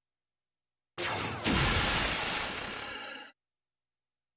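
A loud whoosh rushes past.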